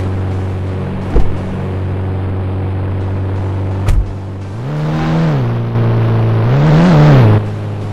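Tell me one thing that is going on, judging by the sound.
A truck engine idles with a low steady hum.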